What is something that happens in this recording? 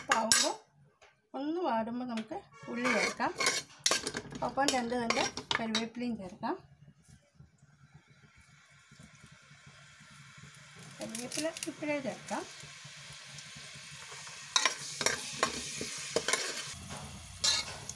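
A metal spoon scrapes and stirs inside a pot.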